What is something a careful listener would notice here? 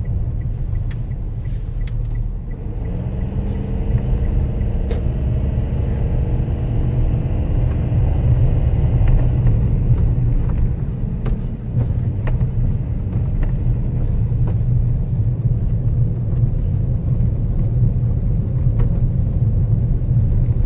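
A car engine hums and tyres rumble on the road.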